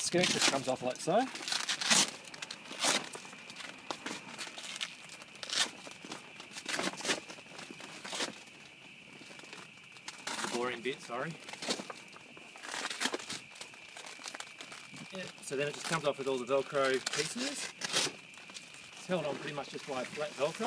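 Plastic sheeting crinkles and rustles as it is handled.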